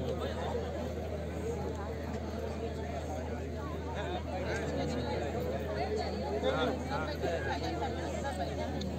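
A crowd murmurs softly in the background.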